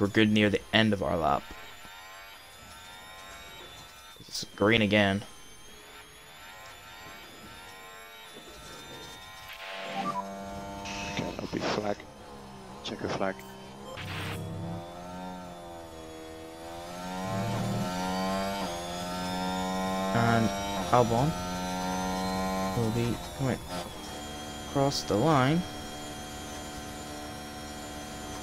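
A racing car engine screams at high revs, rising and dropping in pitch as it shifts gears.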